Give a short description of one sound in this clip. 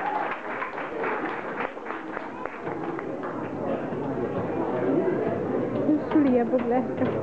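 Children's footsteps patter on a wooden stage.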